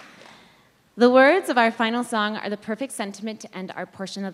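A young woman speaks clearly into a microphone, reading out.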